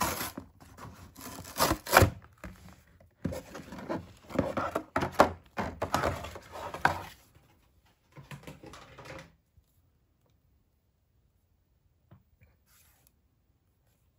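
A plastic doll is handled and its stiff limbs click softly.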